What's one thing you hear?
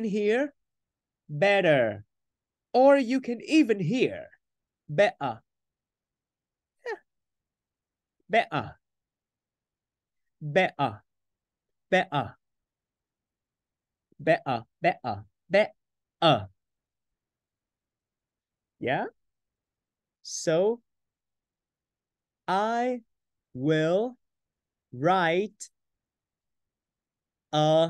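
A young man speaks clearly through a microphone in short, separate bursts, pronouncing words slowly.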